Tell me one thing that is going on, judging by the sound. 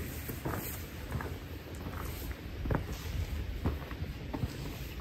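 Footsteps crunch on dry ground close by.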